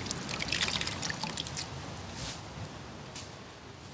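Wet grated coconut squelches and liquid drips as it is squeezed by hand.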